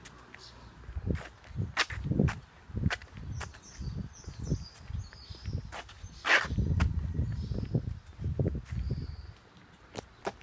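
Footsteps walk steadily along a pavement outdoors.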